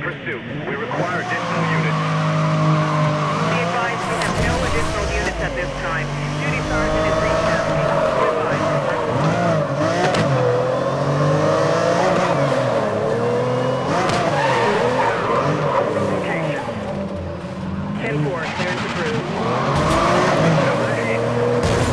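A sports car engine roars loudly, revving up and down through its gears.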